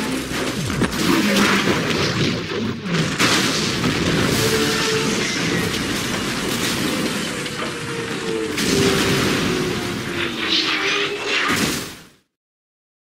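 Wind roars loudly.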